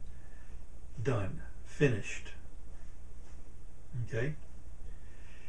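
A middle-aged man speaks with animation into a close microphone, in short bursts.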